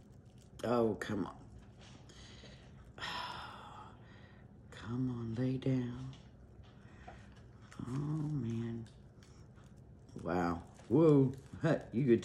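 Plastic wrap crinkles as hands pull and smooth it.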